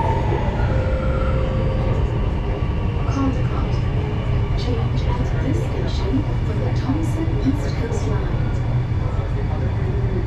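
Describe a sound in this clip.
A subway train rumbles and rattles steadily along the tracks.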